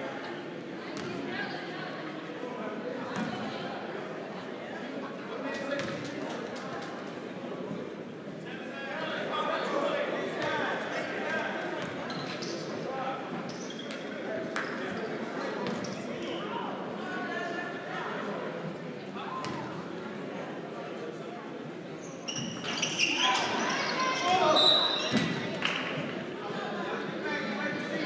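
A crowd chatters, echoing in a large hall.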